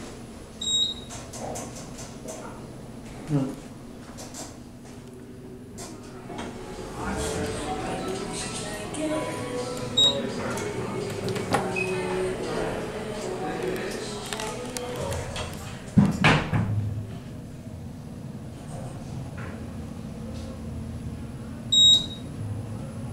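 An elevator chime dings.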